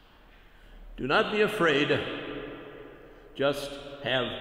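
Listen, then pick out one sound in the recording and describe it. An elderly man speaks slowly and calmly through a microphone in an echoing room.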